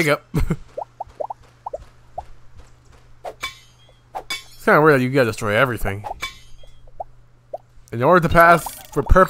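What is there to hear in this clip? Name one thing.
Cartoon punches and thumps land in a scuffle.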